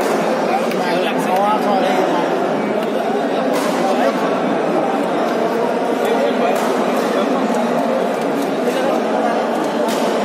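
A crowd of men and women chatter throughout a large echoing hall.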